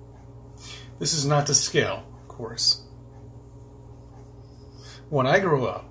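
A middle-aged man speaks close by, calmly and with pauses.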